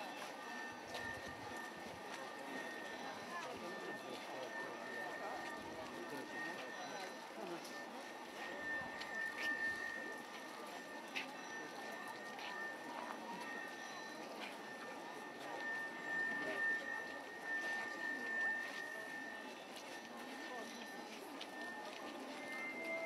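A large crowd of men and women murmurs and chatters outdoors.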